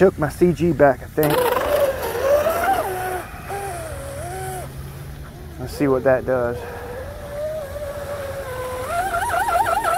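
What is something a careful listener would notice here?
A small boat motor whines and revs up and down.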